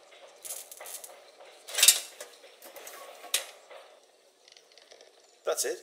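Small metal fuses clatter as they drop onto a hard surface.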